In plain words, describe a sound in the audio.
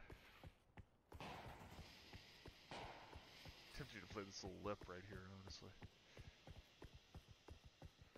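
Footsteps tap quickly and steadily on hard stone.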